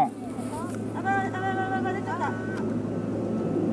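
A young woman exclaims close by.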